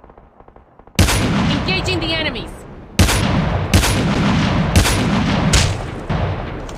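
Sniper rifle shots crack loudly, each followed by a ringing echo.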